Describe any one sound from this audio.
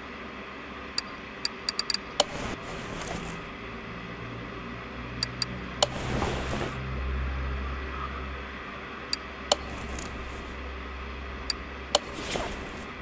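Short game interface clicks sound now and then.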